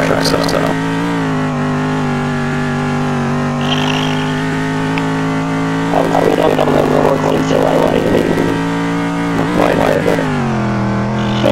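A race car engine drones steadily at high revs, shifting pitch as gears change.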